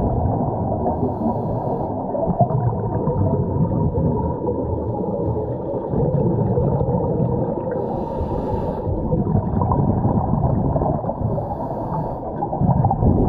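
Air bubbles from a scuba diver gurgle up in short bursts.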